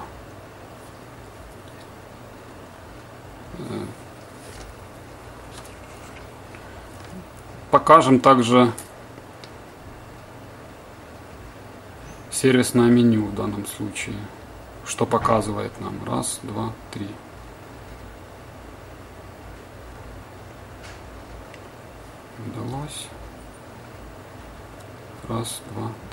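A finger presses a small plastic button, which clicks softly.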